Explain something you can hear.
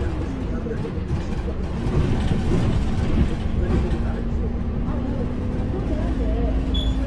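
Road noise drones beneath the bus as it rolls along.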